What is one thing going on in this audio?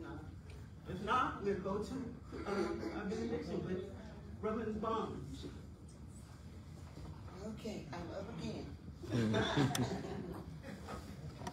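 A woman speaks to a room, in a calm voice.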